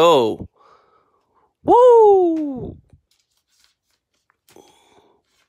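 Trading cards slide into plastic sleeves with a soft rustle.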